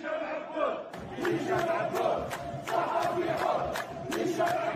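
Hands clap rhythmically in a crowd.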